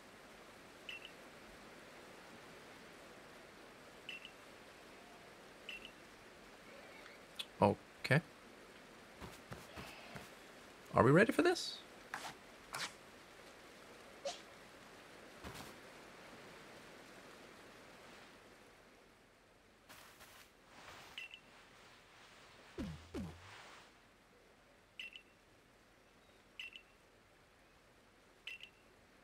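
Short soft chimes tick now and then.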